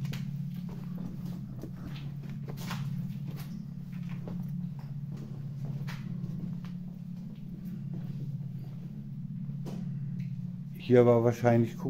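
Footsteps crunch over broken debris and glass.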